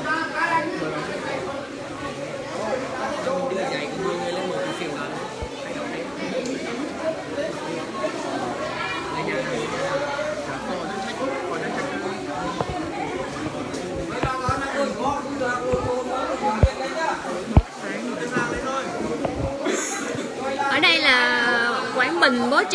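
A crowd of people talks and murmurs at once.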